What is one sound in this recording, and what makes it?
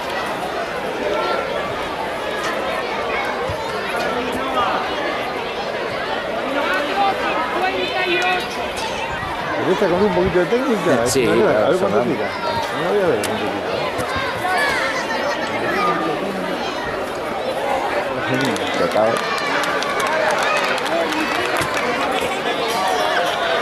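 A crowd of people chatters outdoors.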